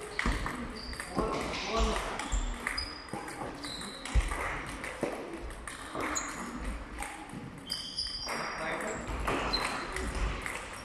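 Sports shoes squeak on a hard floor.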